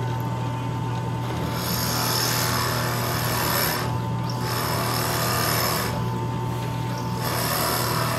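A cordless drill whirs steadily as it bores into wood.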